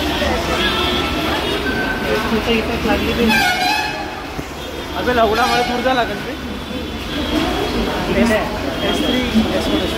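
Footsteps shuffle down wet stairs.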